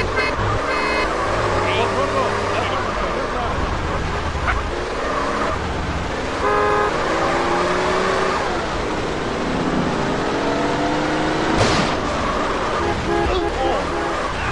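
Tyres screech on a road during sharp turns.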